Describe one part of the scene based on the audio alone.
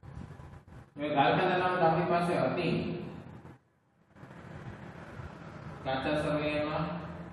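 A man speaks in a lecturing tone, close by.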